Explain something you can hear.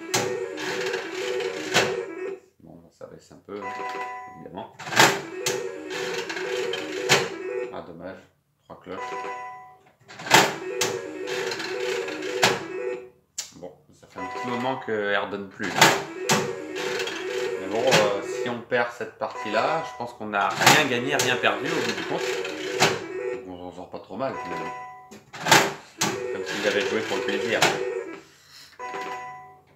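Slot machine reels spin with a rapid whirring clatter.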